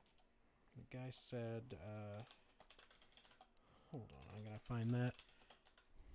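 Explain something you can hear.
A man speaks close to a microphone in short bursts.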